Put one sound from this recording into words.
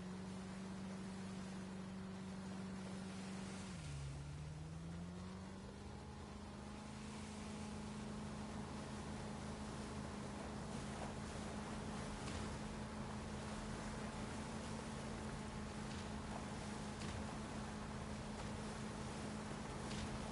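A motorboat engine drones steadily, dipping in pitch briefly and then rising again.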